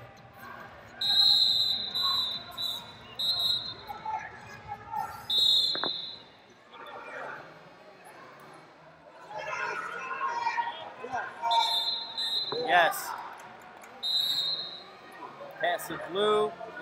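Men shout instructions to wrestlers in a large echoing hall.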